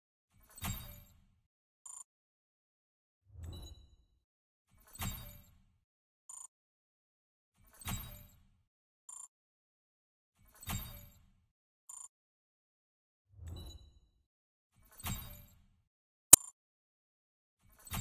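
Game menu cards swoosh in one after another, each with a low thud.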